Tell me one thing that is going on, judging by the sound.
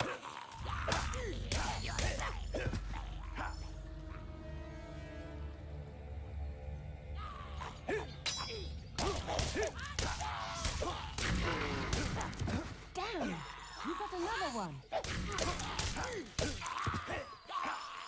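A sword clangs and slashes in a fight.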